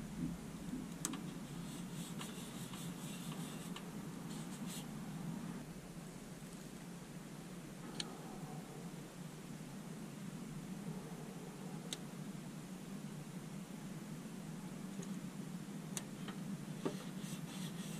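Fingertips tap and click on a hard plastic toy.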